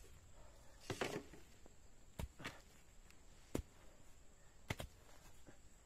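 A hoe chops into soil with dull thuds.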